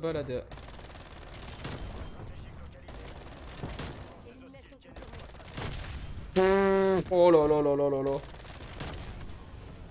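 Gunshots ring out in short, sharp bursts.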